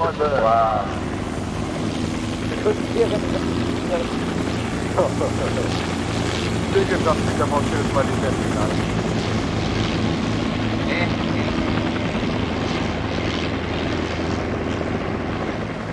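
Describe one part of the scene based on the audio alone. A helicopter lifts off and flies low with a steady rotor roar.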